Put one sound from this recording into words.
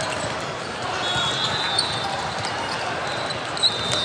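Sneakers squeak on a hard court.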